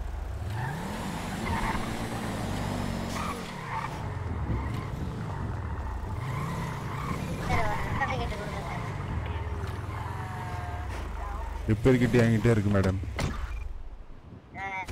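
A car engine revs up and down repeatedly as the car speeds along and slows.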